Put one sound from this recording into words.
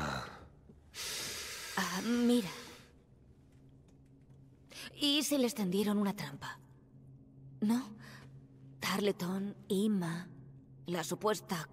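A young woman speaks with animation, her voice rising and falling.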